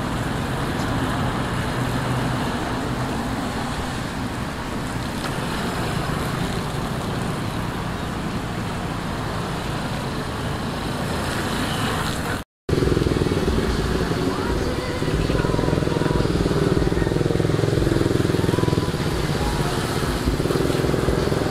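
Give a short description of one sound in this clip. A small motorcycle engine buzzes and revs nearby.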